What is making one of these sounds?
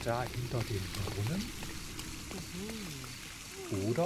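A fountain splashes and trickles.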